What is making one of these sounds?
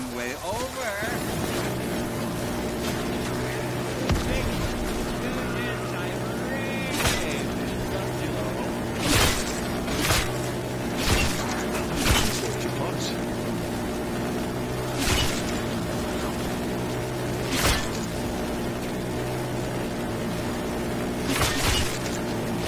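A rapid-fire gun fires in long, droning bursts.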